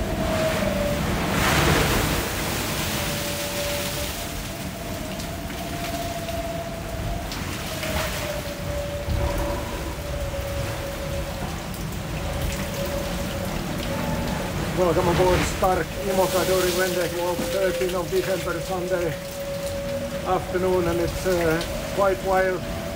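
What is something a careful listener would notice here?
Waves crash against the hull.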